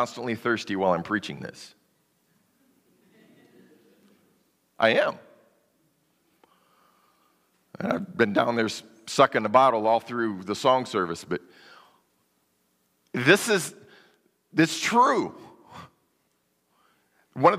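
A man preaches with animation through a microphone in a large, echoing hall, pausing between phrases.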